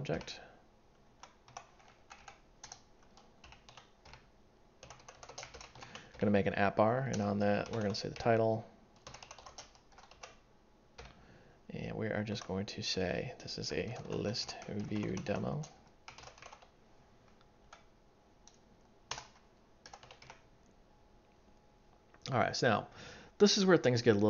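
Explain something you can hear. Keys click on a computer keyboard in quick bursts of typing.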